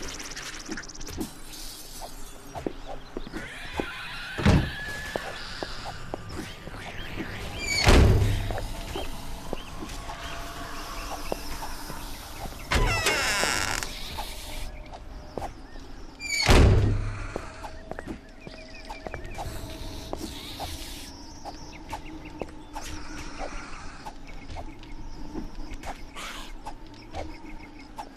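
Footsteps thud on wooden and stone floors.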